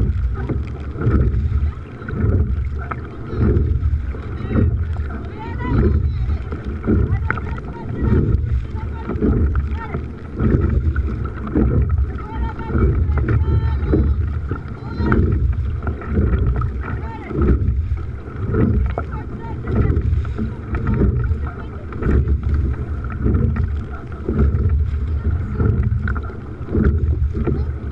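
Oars splash into water in a steady rowing rhythm.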